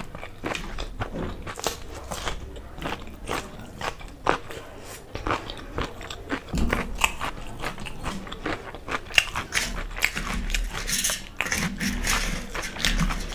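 A young woman slurps and smacks her lips close to a microphone.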